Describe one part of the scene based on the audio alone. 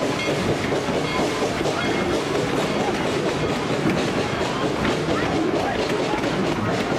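Train cars rumble and clatter along the rails close by.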